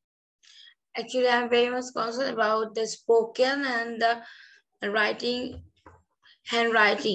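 A woman speaks calmly and clearly over an online call.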